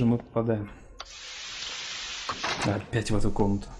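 A heavy door slides open with a rushing hiss.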